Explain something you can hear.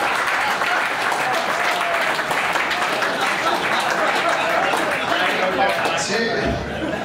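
A group of men laugh and applaud loudly.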